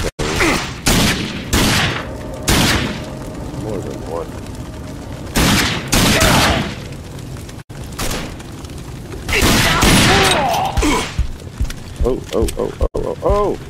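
A man talks with animation through a microphone.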